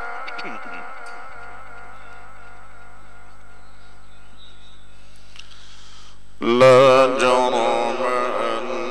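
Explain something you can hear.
A middle-aged man chants in a long, wavering melody through a microphone and loudspeakers.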